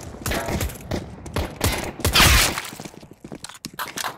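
A silenced pistol fires several quick shots.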